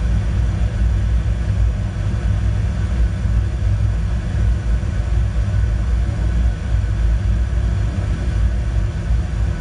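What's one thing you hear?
A jet engine rumbles low and steady through loudspeakers.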